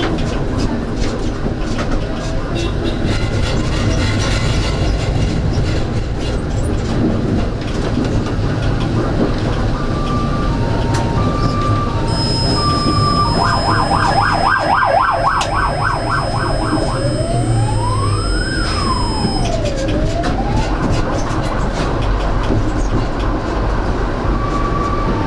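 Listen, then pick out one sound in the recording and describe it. A tram rumbles steadily along its rails.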